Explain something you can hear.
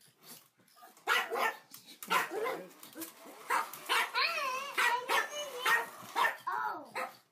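A dog growls playfully while tugging.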